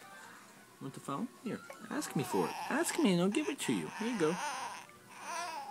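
A baby cries loudly close by.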